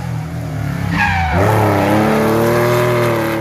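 A rally car engine roars and revs up as the car comes out of a bend.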